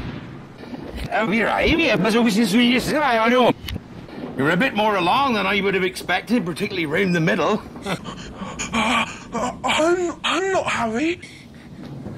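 A man with a deep voice speaks loudly and firmly.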